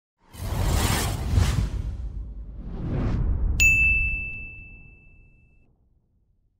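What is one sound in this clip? A whooshing effect swells and fades.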